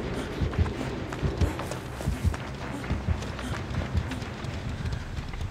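Quick footsteps patter over the ground.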